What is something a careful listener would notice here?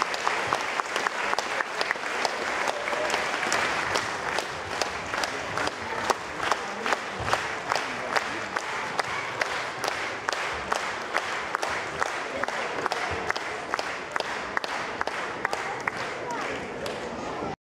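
Children's feet stamp rhythmically on a wooden stage.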